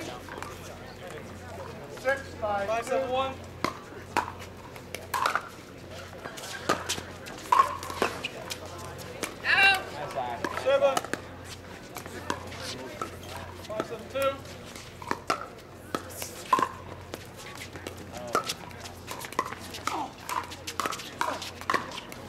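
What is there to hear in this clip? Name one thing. Paddles strike a plastic ball with sharp hollow pops.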